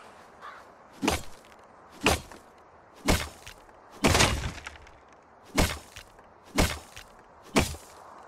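Blows chop at a wall.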